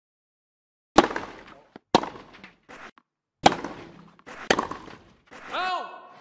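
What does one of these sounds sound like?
A tennis racket strikes a ball back and forth in a rally.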